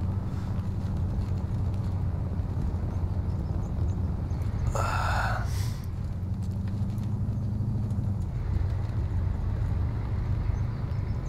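A vehicle engine rumbles steadily from inside the cab.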